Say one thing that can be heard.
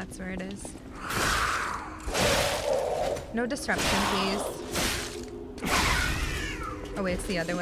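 Blades swing and strike with sharp whooshes and impacts.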